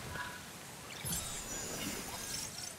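A bright magical shimmer chimes and sparkles.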